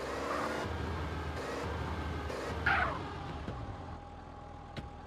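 A car engine idles and revs.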